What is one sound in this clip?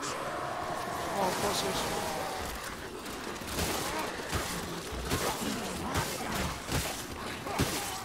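Blades slash and thud into creatures in a fast melee fight.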